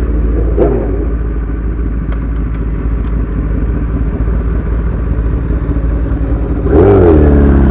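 A motorcycle engine idles with a low, uneven rumble.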